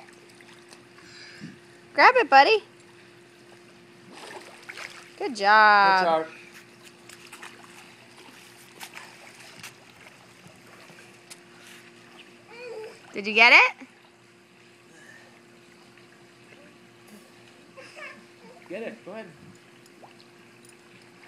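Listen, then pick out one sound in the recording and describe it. Water sloshes and splashes gently as a small child wades.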